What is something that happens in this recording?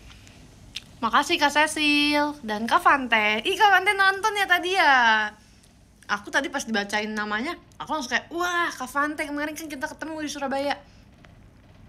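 A young woman speaks animatedly and sings out, close by.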